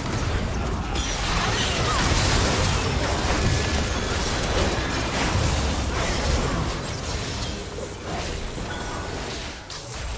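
Game spell effects crackle and burst in a chaotic fight.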